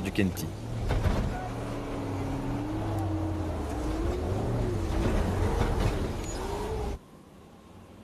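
An off-road vehicle's engine revs and labours, its pitch rising and falling.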